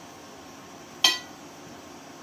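A dish clinks against a bowl.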